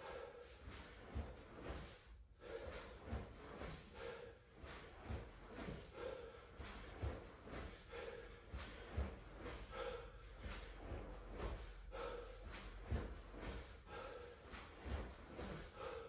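A man breathes hard in a steady rhythm.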